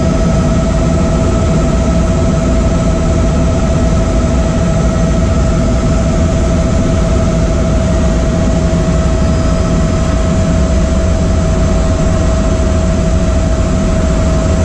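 A helicopter's engine and rotor roar steadily from inside the cabin, with a high whine.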